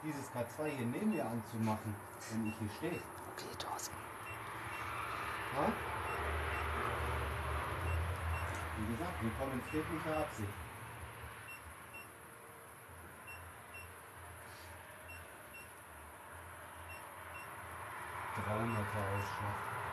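A young man talks quietly close by.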